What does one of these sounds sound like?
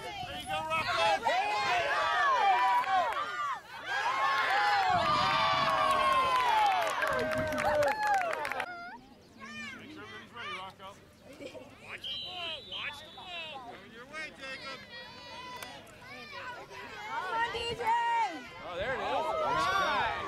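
A crowd of adult spectators cheers and shouts outdoors.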